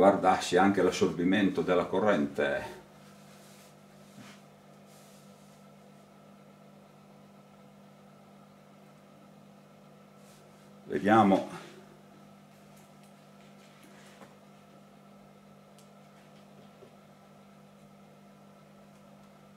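A transformer hums steadily and quietly.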